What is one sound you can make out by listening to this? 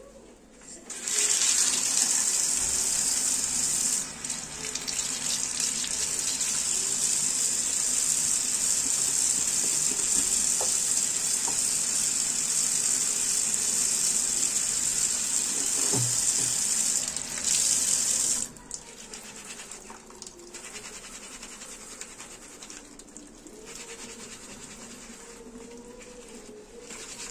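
Water runs from a tap and splashes into a sink.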